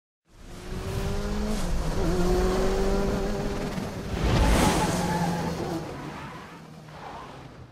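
A truck engine roars and revs.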